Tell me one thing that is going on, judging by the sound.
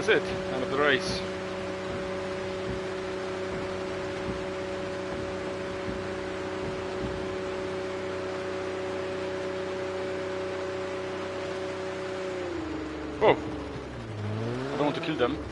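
A car engine hums steadily at a low, held speed, then winds down.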